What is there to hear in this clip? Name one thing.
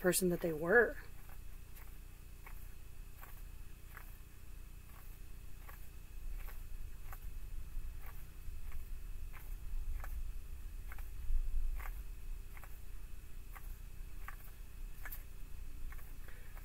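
Cards riffle and tap as they are shuffled by hand.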